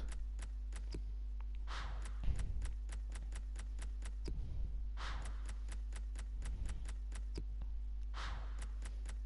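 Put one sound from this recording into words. Soft menu clicks tick rapidly and steadily.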